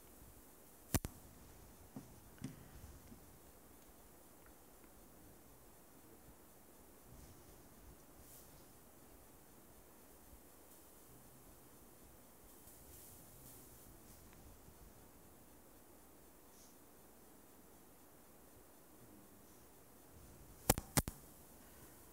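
Small objects knock on a table.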